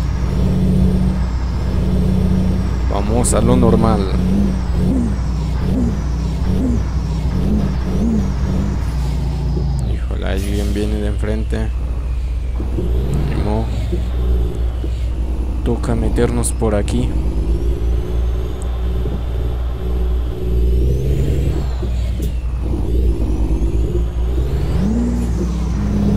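A bus engine drones steadily.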